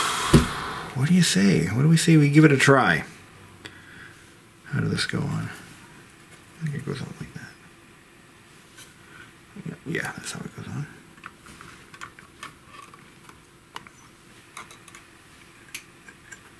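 A metal drive cover scrapes and clatters as it is handled and set down.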